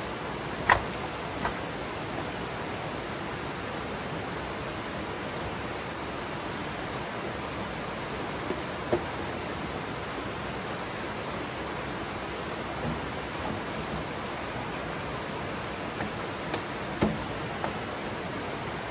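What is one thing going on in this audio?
A stream rushes steadily over rocks outdoors.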